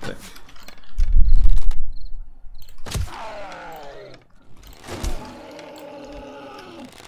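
A zombie snarls and groans close by.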